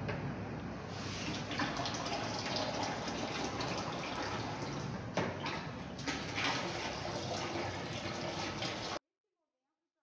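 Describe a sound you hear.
Liquid pours from one bucket into another.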